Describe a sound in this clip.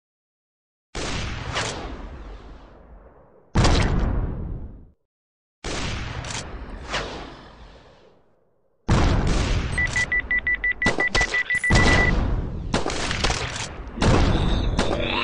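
A missile launches with a whoosh.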